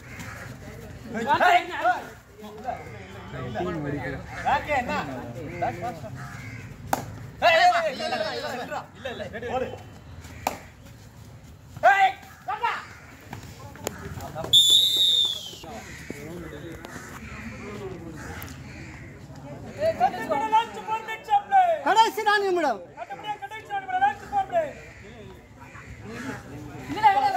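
A young man chants rapidly and repeatedly outdoors.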